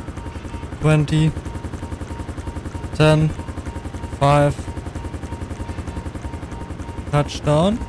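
A helicopter's rotor thumps rapidly and steadily.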